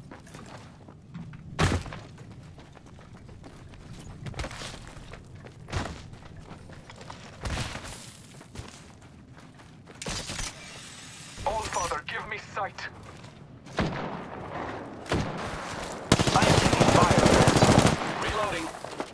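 Footsteps thud quickly across sandy ground.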